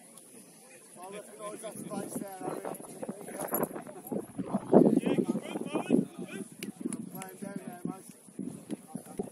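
Adult men talk and call out close by, outdoors.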